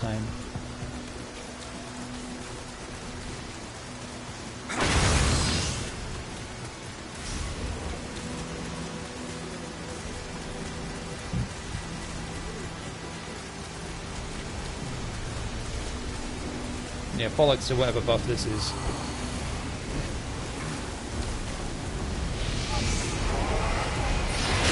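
Rain falls steadily.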